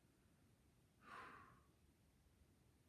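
A man sighs or breathes out heavily.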